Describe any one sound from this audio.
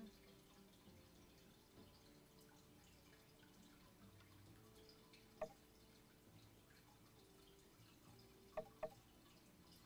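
A young woman speaks quietly and calmly into a microphone.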